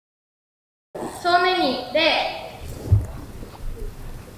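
A group of children call out together.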